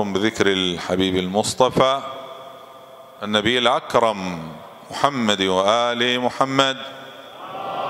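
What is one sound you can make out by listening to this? A man chants in a long, wavering melodic voice through a microphone, in a reverberant hall.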